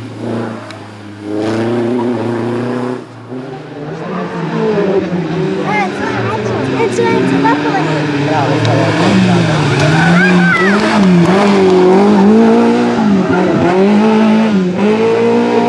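A rally car engine revs hard and roars, shifting up and down through the gears.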